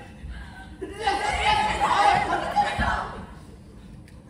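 A young woman cries out loudly in distress.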